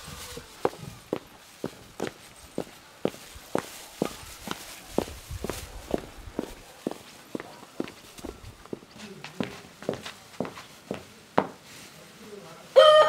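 Footsteps crunch steadily on dry ground.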